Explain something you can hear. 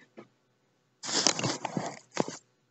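Soft fur brushes and rustles loudly right against the microphone.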